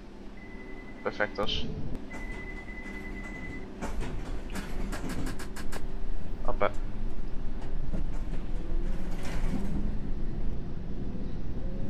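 A train rumbles along the tracks and gathers speed.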